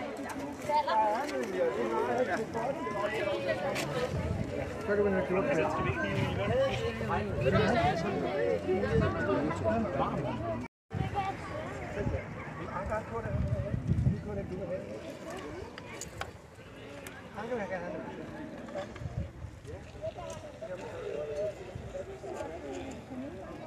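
A crowd of adults and children chatter outdoors all around.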